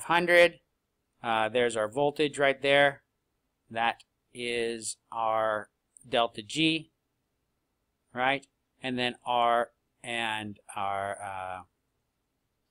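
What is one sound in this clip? A man talks calmly into a microphone, heard through an online call.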